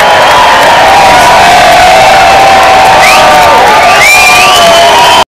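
An acoustic guitar is strummed.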